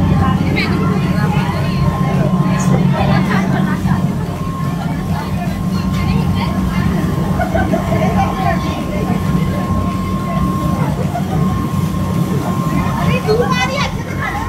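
A boat engine drones steadily throughout.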